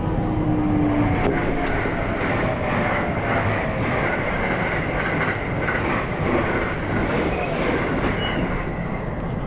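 Another train rushes past close by with a loud whoosh.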